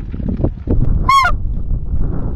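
A goose call honks loudly and close up in a short, sharp burst.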